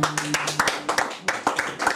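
A man strums an acoustic guitar.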